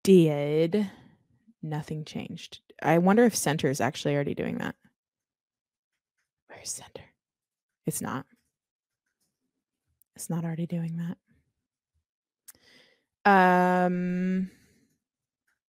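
A woman talks with animation into a close microphone, in bursts with pauses.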